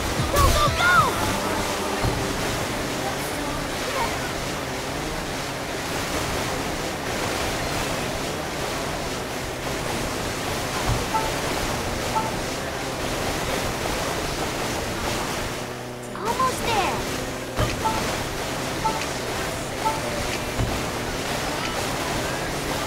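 Water splashes and sprays against a jet ski.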